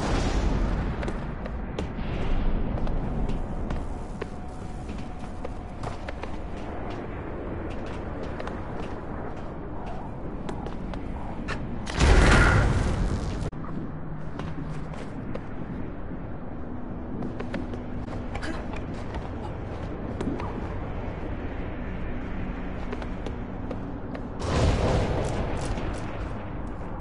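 Light footsteps tap on stone.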